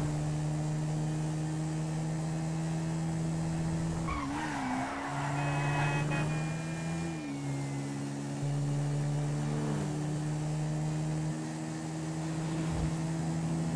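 A quad bike engine hums steadily and shifts pitch as it speeds along.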